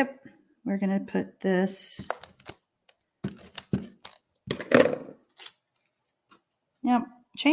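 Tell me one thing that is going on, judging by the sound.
Paper rustles and slides.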